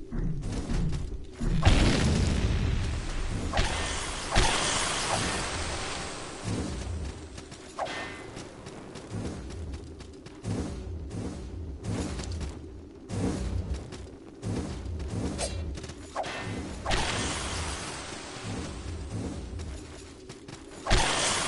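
Game music plays with a low, pulsing beat.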